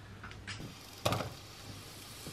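Onion pieces drop into a pan with a soft thud.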